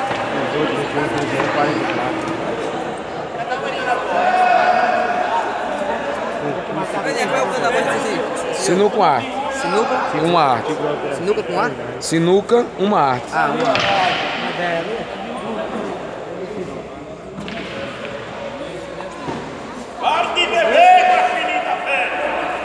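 A crowd of men talk and murmur nearby.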